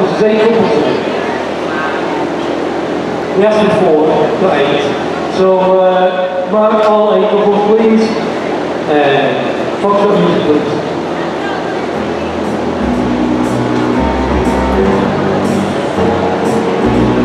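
Music plays over loudspeakers in a large echoing hall.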